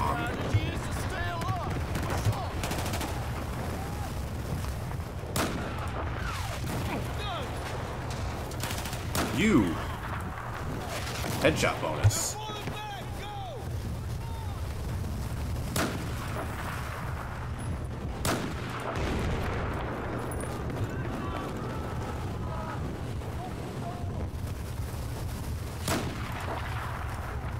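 Explosions and gunfire rumble in the distance throughout.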